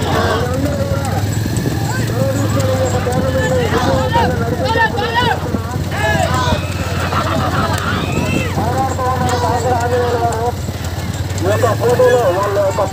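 Men shout and call out loudly nearby, outdoors.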